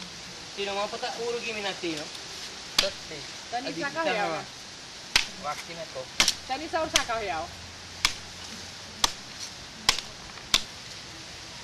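A man chops at a coconut husk.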